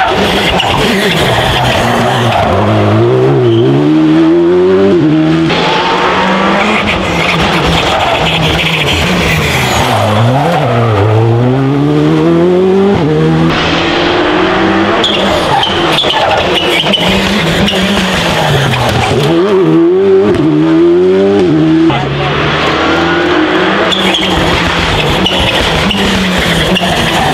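Rally car engines pop and crackle as drivers lift off.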